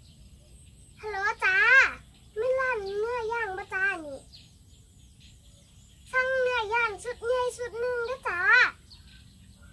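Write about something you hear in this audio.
A young girl speaks into a phone close by, with animation.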